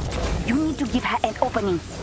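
A sword slashes with a heavy whoosh.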